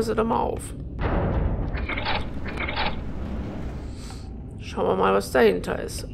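A heavy metal door slides open with a low rumble.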